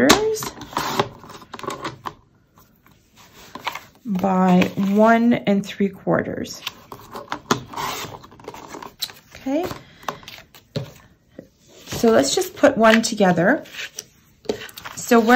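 Sheets of card slide and rustle against a hard surface.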